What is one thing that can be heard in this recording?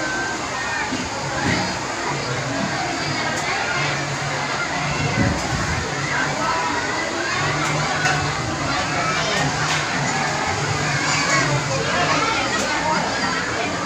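A crowd of children and adults chatter and shout all around outdoors.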